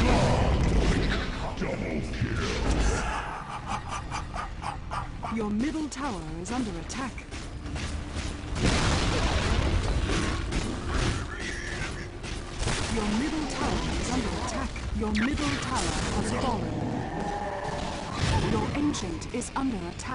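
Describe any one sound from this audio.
Video game spell effects and hits crackle and clash.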